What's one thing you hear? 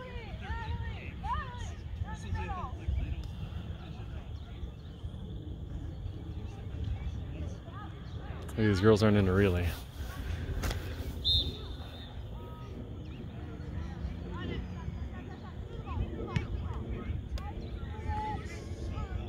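Players shout to each other across an open field outdoors.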